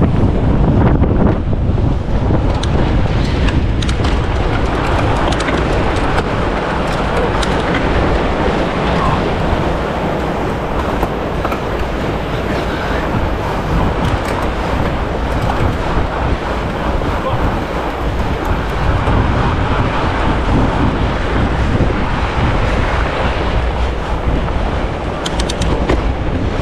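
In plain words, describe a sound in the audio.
Fat bike tyres crunch and hiss over packed snow.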